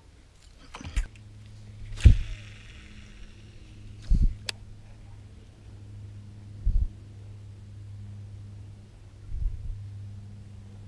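A fishing reel whirs steadily as line is wound in.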